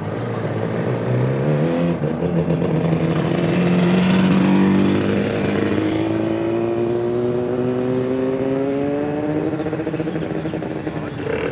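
A motorcycle engine revs and accelerates past close by.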